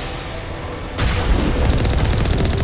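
Explosions boom loudly.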